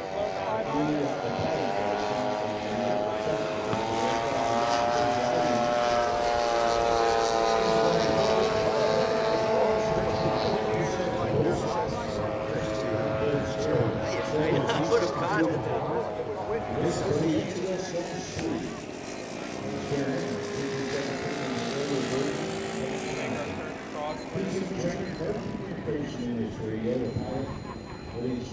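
A model plane's engine drones overhead, rising and falling in pitch as it passes.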